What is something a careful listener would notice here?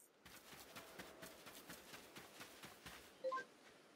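Quick footsteps patter on grass.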